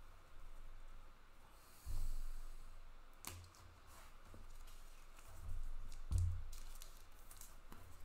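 Plastic card sleeves crinkle and rustle close by.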